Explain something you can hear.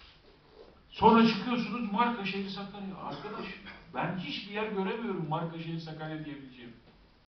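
A man speaks forcefully into a microphone in a large room.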